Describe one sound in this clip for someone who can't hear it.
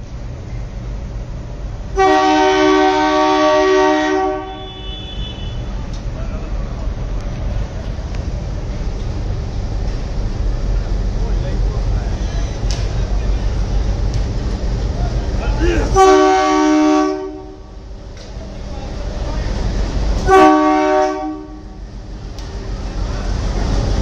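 A diesel locomotive engine rumbles steadily as it approaches.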